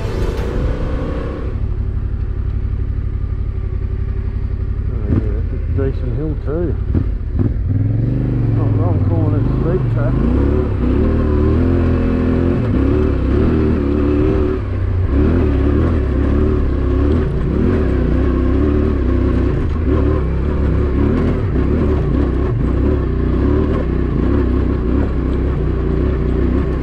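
A motorcycle engine revs and labours up a steep dirt track.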